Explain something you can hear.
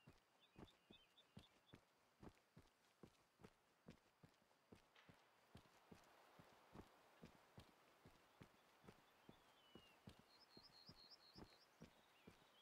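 Footsteps crunch steadily on a dirt path outdoors.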